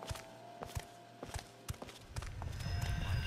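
Footsteps tap on a hard metal floor.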